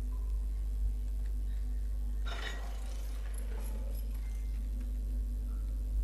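A wheelchair's wheels roll and creak.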